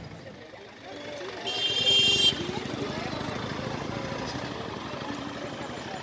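A bus engine rumbles as the bus drives past.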